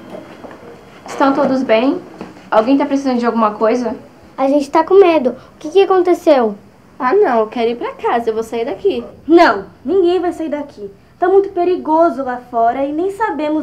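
A young girl speaks calmly nearby.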